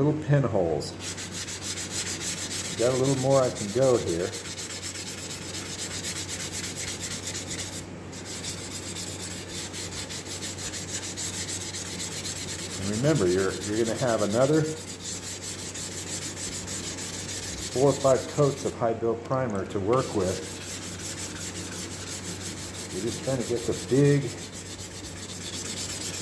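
A sanding block scrapes back and forth over a hard surface in quick strokes.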